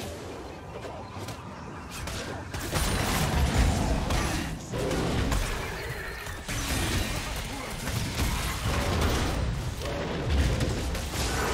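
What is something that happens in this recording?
Magic blasts and weapon hits crackle and burst during a game battle.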